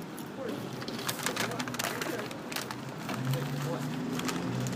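Footsteps scuff on pavement close by.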